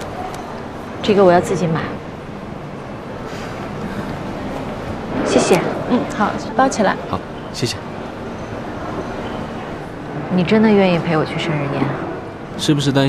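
A young woman speaks softly and calmly nearby.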